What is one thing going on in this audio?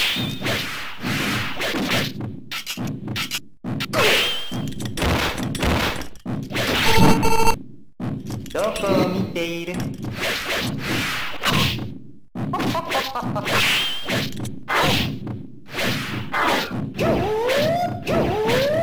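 Game music plays throughout.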